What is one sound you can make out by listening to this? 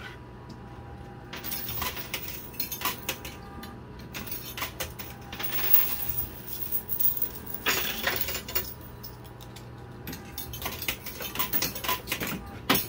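A coin pusher shelf hums steadily as it slides back and forth.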